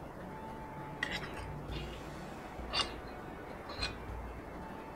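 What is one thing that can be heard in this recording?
A ladle clinks against a pot as soup is scooped.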